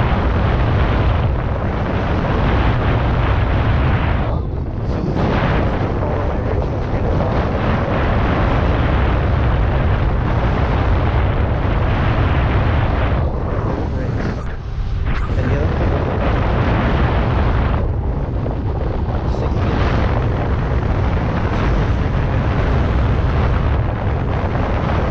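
Wind rushes loudly over a microphone while riding an electric unicycle outdoors.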